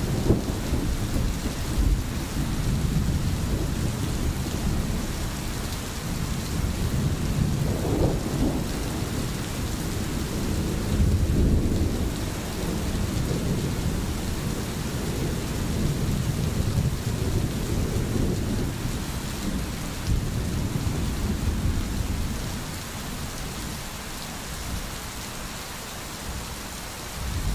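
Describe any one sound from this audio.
A stream flows and babbles steadily.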